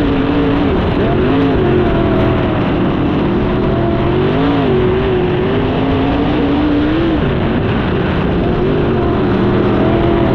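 A racing engine roars loudly close by, its pitch rising and falling with the throttle.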